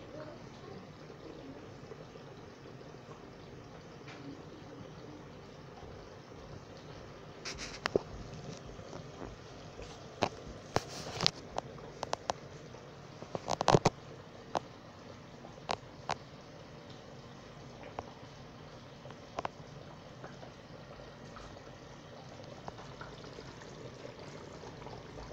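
Thick sauce bubbles and plops softly in a pot.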